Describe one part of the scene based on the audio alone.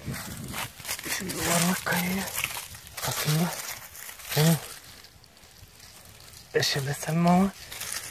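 Dry grass and leaves rustle as a hand pushes through them.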